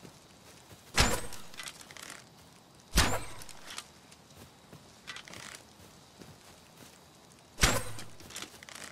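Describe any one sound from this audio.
A bow twangs as arrows are shot, one after another.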